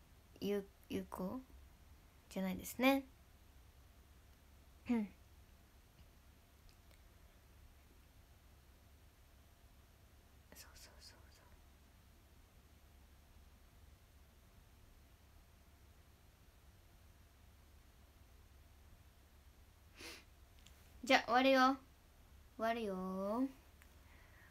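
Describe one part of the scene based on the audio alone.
A young woman speaks softly and close up, in short bursts with long pauses.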